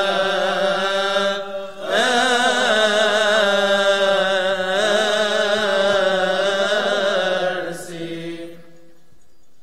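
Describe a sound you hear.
Men chant together in a long, drawn-out melody in an echoing hall.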